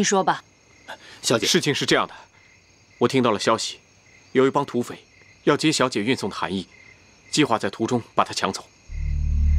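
A man speaks earnestly.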